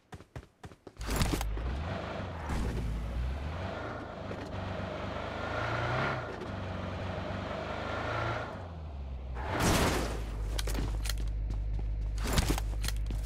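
A car engine roars and hums steadily.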